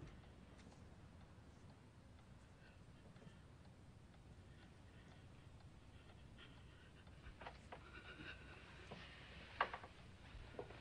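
A woman sobs quietly.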